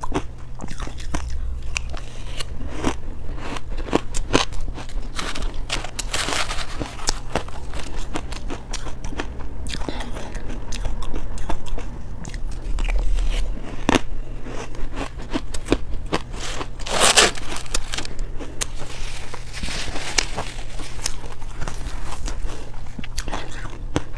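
A woman crunches on icy food close to a microphone.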